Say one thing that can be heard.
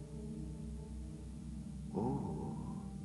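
Men chant together in low voices, echoing in a large hall.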